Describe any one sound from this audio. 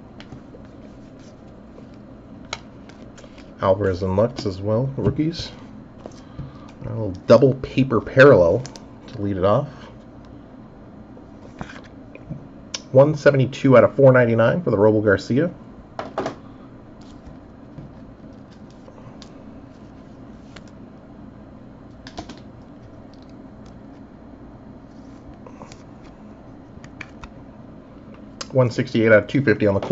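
Trading cards rustle and tap softly as hands shuffle through them.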